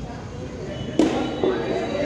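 A cricket bat hits a ball with a sharp crack.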